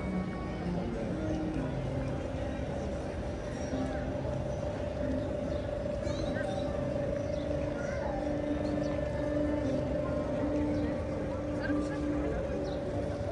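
Footsteps of passers-by tap on paving outdoors.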